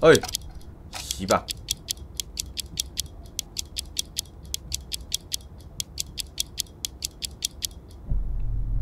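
A clock ticks rapidly and evenly.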